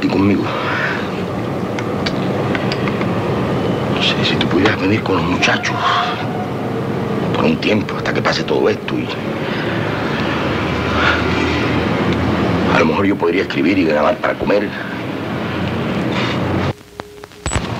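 A middle-aged man speaks close by, calmly and earnestly.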